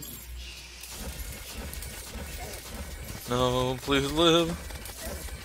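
Video game magic spells whoosh and chime in quick bursts.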